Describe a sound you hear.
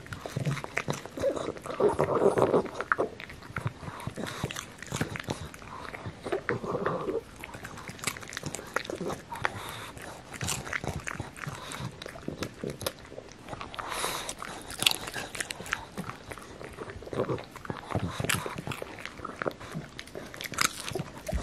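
A dog crunches and chews popcorn up close.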